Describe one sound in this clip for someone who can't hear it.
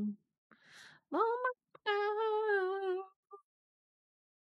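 A young woman talks over a microphone.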